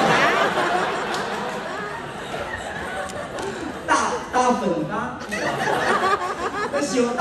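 A young man speaks with animation through a microphone in an echoing hall.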